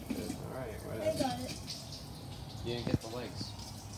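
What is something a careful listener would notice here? A metal pot lid clinks onto a pot.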